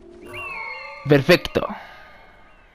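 An eagle screeches loudly.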